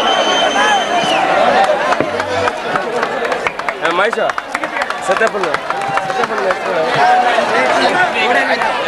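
A crowd of men talk and shout together nearby.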